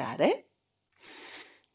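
A man breathes out through his mouth.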